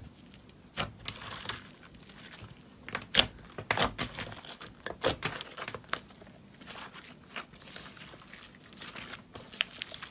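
Fluffy slime squelches and crackles as hands stretch it.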